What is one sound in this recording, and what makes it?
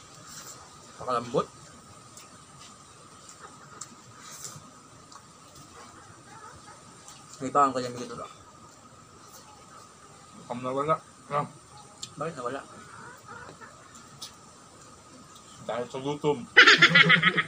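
Young men talk casually and close by in short bursts.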